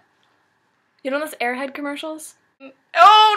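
A teenage girl talks softly, close to the microphone.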